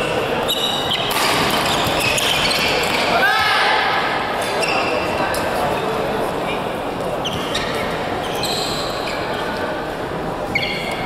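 Shoes squeak sharply on a court floor in a large echoing hall.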